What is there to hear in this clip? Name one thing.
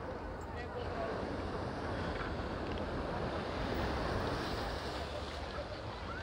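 Waves wash and lap against a shore outdoors.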